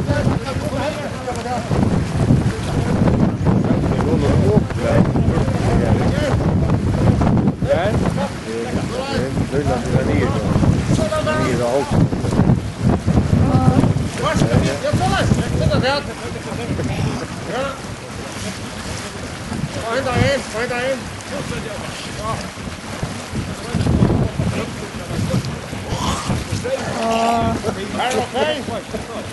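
Wind blows hard outdoors, rumbling across the water.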